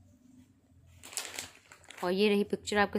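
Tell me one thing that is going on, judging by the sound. A plastic packet crinkles as it is handled.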